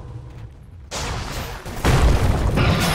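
A fiery blast roars loudly.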